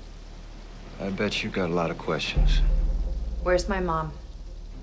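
A young woman speaks quietly nearby.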